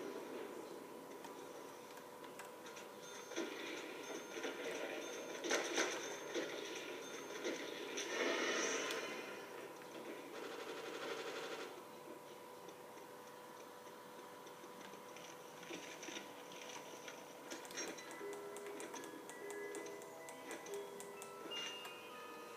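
Sound effects from a video game play through a television speaker.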